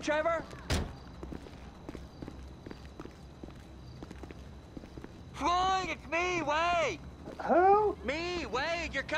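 Footsteps thud quickly up wooden stairs.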